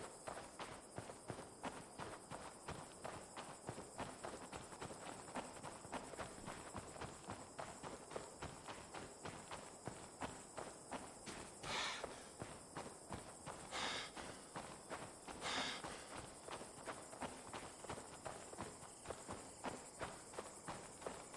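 Footsteps crunch steadily on gravel and dry grass.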